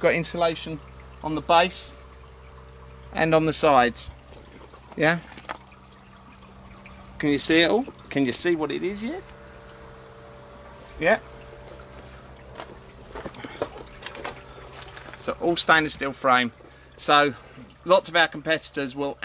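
An electric pump hums steadily.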